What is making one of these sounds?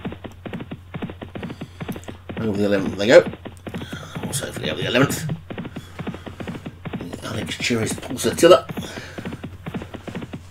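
Horses' hooves gallop rapidly on turf.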